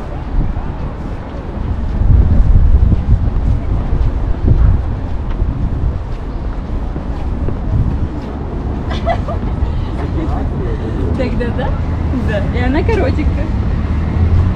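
Footsteps tap on wooden boards.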